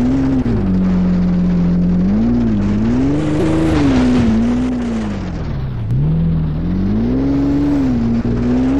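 A car engine hums and revs up and down as it climbs rough ground.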